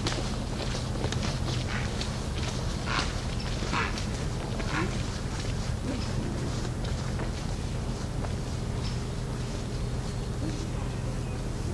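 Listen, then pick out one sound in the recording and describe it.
Footsteps crunch on a gravel path and slowly fade into the distance.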